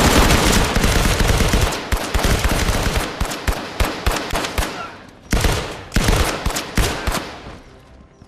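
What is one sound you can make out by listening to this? Rifle shots fire in rapid bursts, echoing in a hard-walled room.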